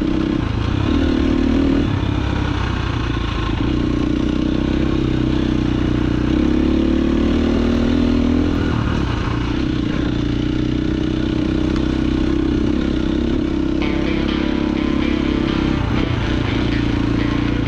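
Tyres crunch and rattle over a bumpy dirt trail.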